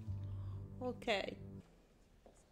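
A young woman laughs softly.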